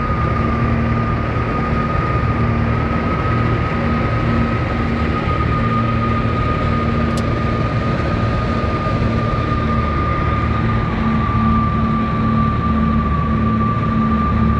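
A small plane's engine drones steadily and loudly.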